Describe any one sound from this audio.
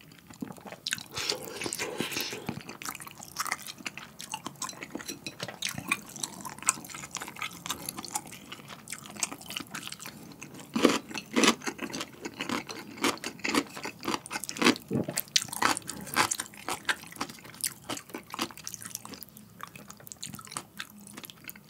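A spoon and chopsticks clink against a ceramic bowl.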